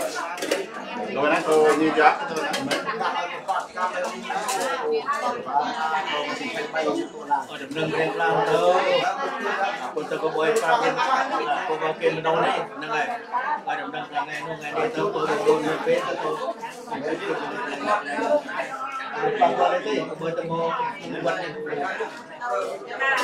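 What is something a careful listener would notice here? A man speaks with animation into a microphone, heard through a loudspeaker in a large room.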